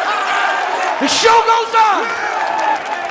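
A man shouts into a microphone over a loudspeaker.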